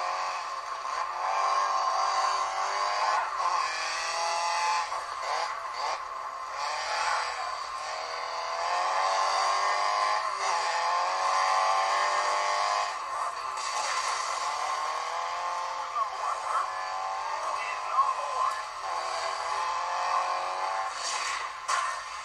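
A rally car engine revs loudly, rising and falling in pitch as gears change.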